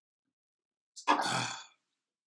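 A metal mug is set down on a wooden desk with a soft knock.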